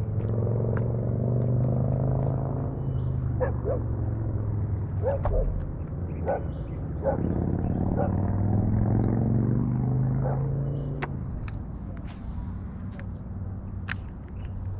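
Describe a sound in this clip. Water laps softly against a paddleboard.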